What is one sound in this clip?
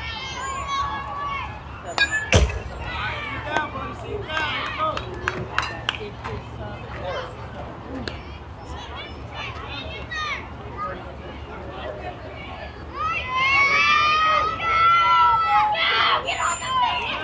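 Young players shout and cheer across an open field.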